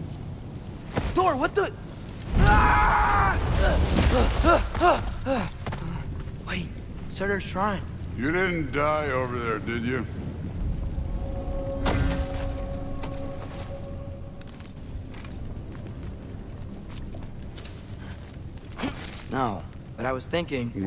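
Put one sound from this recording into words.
A boy speaks with surprise and urgency, close by.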